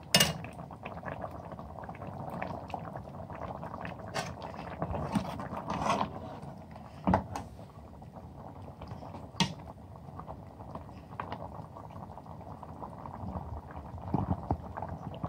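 A metal ladle clinks against a steel pot.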